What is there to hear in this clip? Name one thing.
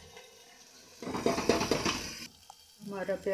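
Chopped onions drop into hot oil in a metal pot and sizzle.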